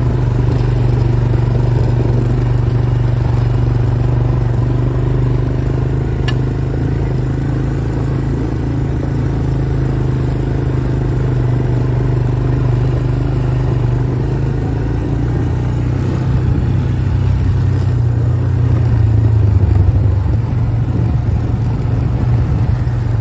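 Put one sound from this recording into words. A quad bike engine hums steadily up close.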